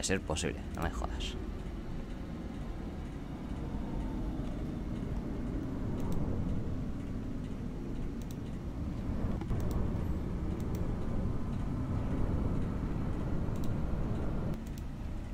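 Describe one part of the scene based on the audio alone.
A low rushing rumble drones steadily throughout.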